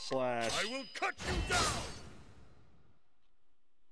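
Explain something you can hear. Sword slashes strike with sharp whooshing impacts.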